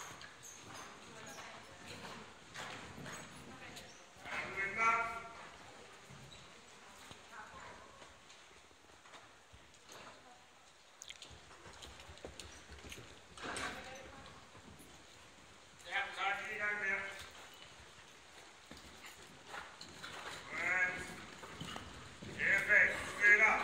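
Hooves thud softly on sand as horses trot.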